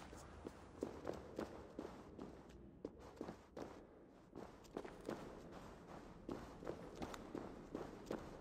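Footsteps crunch steadily over dirt and gravel.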